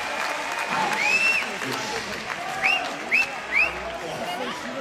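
A crowd member whistles sharply several times.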